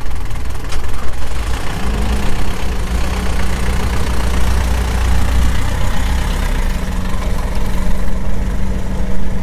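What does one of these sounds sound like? A car engine idles with a steady low rumble, heard outdoors in wind.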